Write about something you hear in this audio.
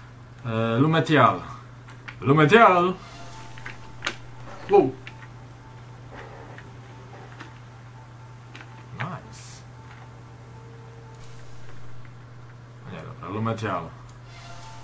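A young man talks casually into a close microphone, in short bursts.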